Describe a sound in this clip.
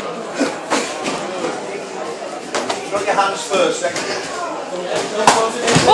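Gloved punches and kicks thud against bodies.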